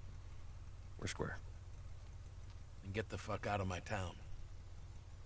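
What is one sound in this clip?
A middle-aged man talks gruffly with animation.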